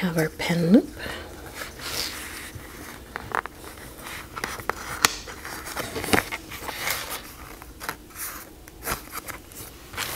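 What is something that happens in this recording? A metal clip clicks and scrapes as it slides onto a notebook.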